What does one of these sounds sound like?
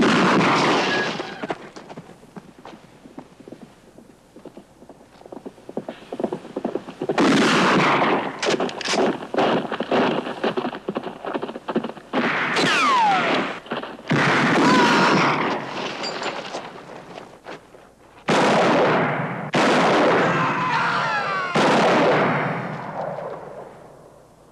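Gunshots crack and echo loudly off rock walls.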